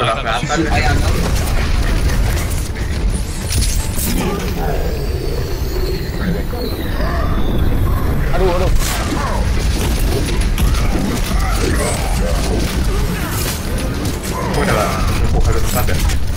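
Guns fire in rapid bursts during a video game fight.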